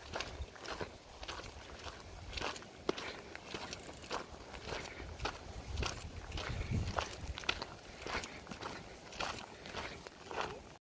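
Footsteps crunch steadily on loose gravel.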